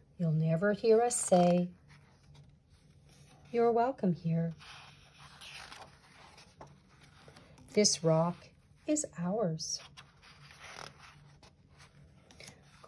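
Pages of a large book are turned by hand.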